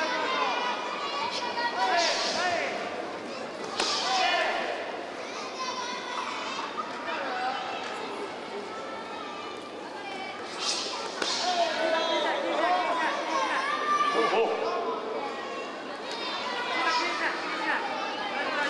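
A crowd of men and women shouts and cheers loudly in a large echoing hall.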